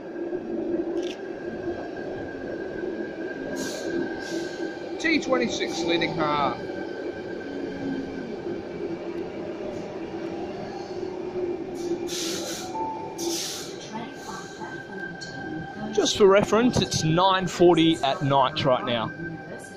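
An electric commuter train pulls into a platform, rumbling in an echoing underground station.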